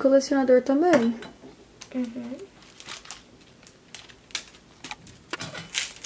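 Small plastic objects click and rattle in a girl's hands.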